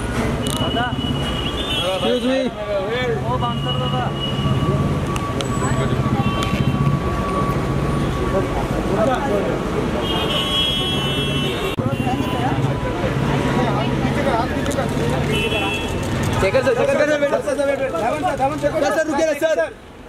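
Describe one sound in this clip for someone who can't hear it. A crowd of men and women talk and call out outdoors.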